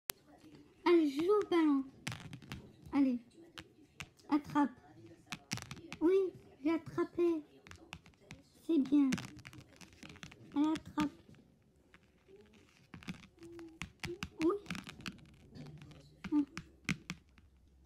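Small plastic toys tap and bump against a book.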